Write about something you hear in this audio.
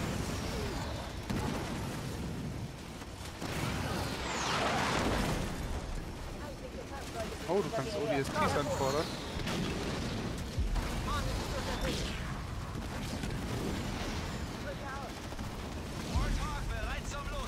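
Gunfire rattles.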